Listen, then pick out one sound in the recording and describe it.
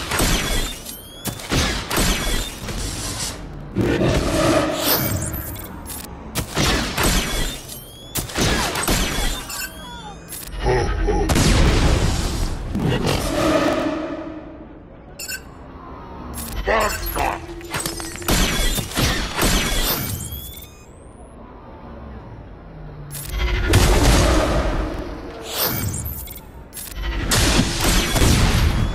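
Laser blasts and impacts crack in quick bursts.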